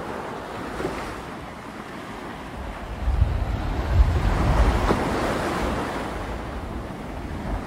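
Wind rumbles outdoors in gusts.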